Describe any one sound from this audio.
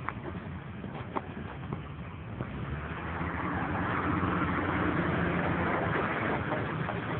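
An off-road car engine revs and roars across open ground.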